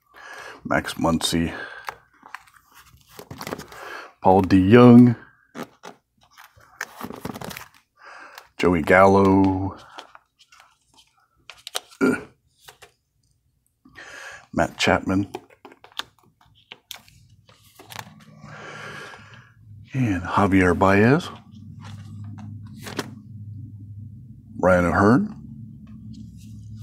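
Plastic card sleeves crinkle and rustle.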